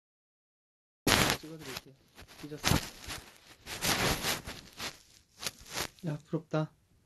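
Fabric rustles and shuffles close by.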